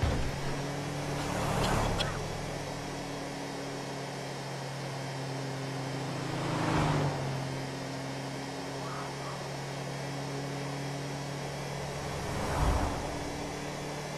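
Cars whoosh past in the opposite direction.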